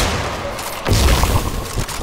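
Electric crackling bursts out.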